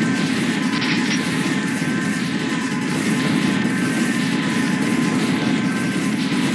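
Rapid gunfire rattles without pause.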